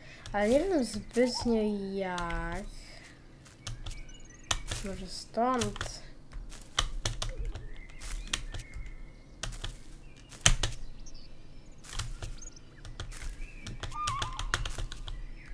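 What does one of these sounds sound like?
A small animal patters quickly over the ground.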